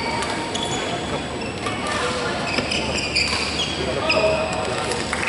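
Badminton rackets hit a shuttlecock in a large echoing hall.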